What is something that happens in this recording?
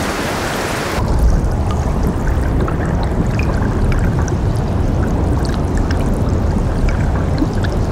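Meltwater rushes and rumbles through an ice channel.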